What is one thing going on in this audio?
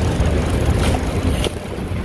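A bus drives along a busy street.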